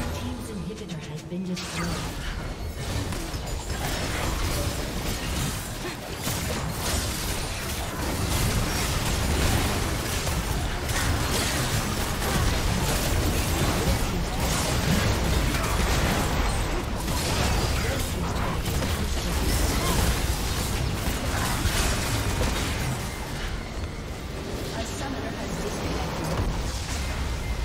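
Rapid magical blasts and hits clash in a chaotic battle.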